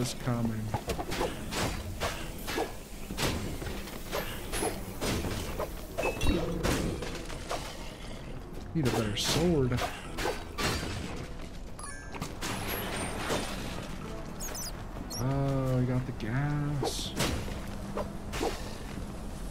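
Game swords clash and thud in quick hits.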